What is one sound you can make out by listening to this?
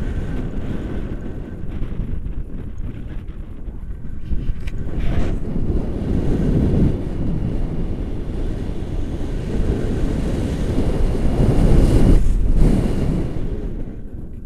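Wind rushes and buffets loudly against a nearby microphone.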